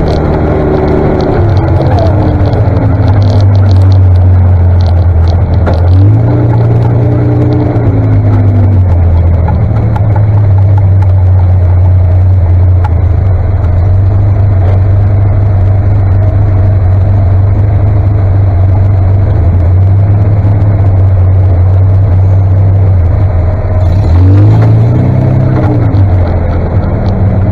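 A tractor engine revs up and eases off now and then.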